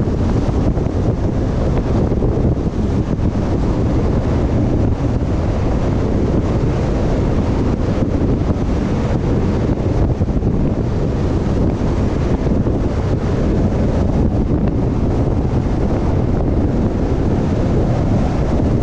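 Wind roars steadily against a moving vehicle.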